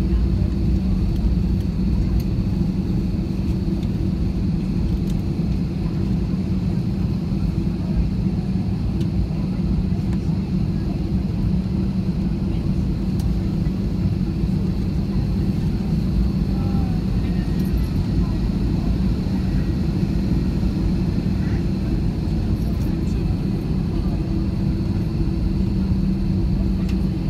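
Aircraft tyres rumble over the taxiway.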